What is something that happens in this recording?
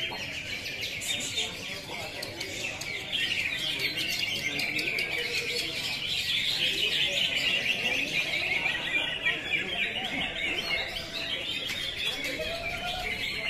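Many small birds chirp and twitter busily close by.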